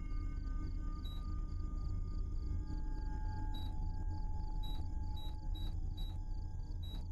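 A game menu blips each time an item is scrolled through.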